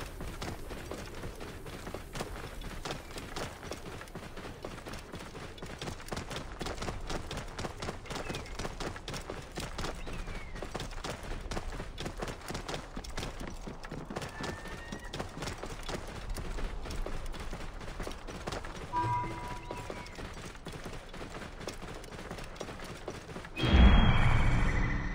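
Wind blows across open desert.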